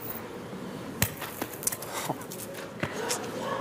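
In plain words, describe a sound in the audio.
Metal balls thud onto gravel.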